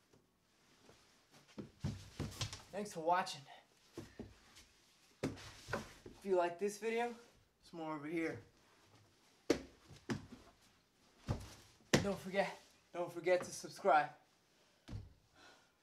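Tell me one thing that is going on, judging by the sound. Bodies thump and slide on a wooden floor.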